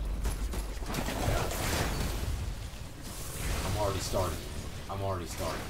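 A fiery hammer explodes with a roar.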